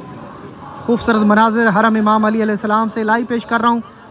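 A crowd chants loudly together outdoors.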